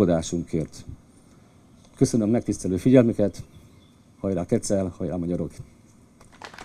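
An elderly man speaks calmly into a microphone outdoors.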